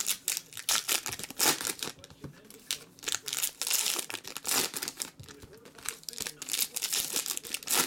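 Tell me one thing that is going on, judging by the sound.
Foil wrappers crinkle and rustle close by.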